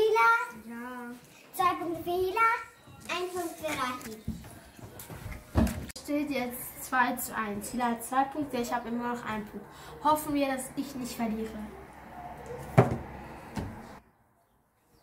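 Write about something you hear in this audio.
A girl talks with animation close by.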